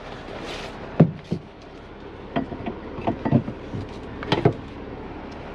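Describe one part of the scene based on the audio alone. Objects knock and clatter on the floor of a truck cab.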